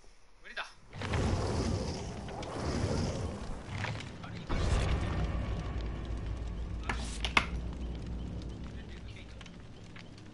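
A campfire crackles and hisses.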